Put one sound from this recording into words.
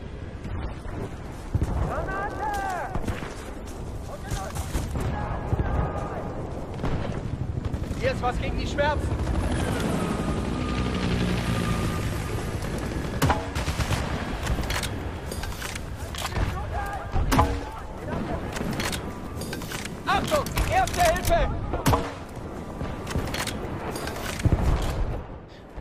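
A rifle fires in sharp bursts.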